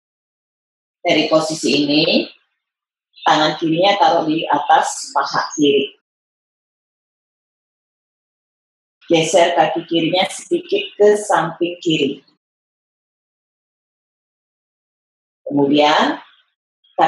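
A woman calmly gives exercise instructions through an online call.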